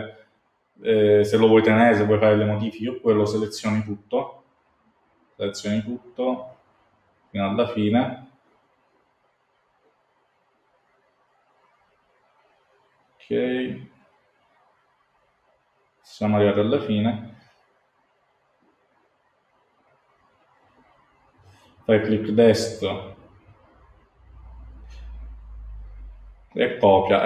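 A man speaks calmly in short bursts through a microphone, with pauses between.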